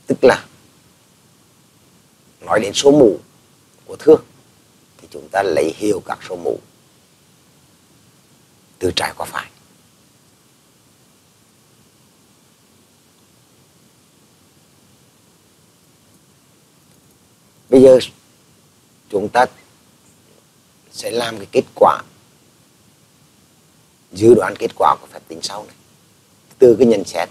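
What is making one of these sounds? An elderly man speaks calmly into a microphone, pausing often.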